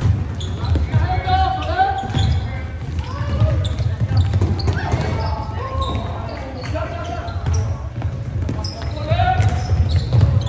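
Plastic sticks clack against a ball and against each other.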